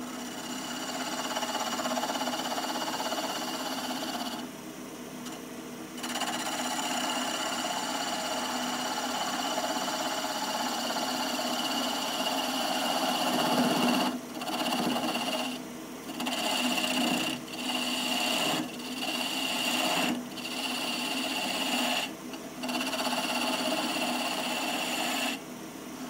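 A gouge scrapes and hisses against spinning wood, in bursts with short pauses.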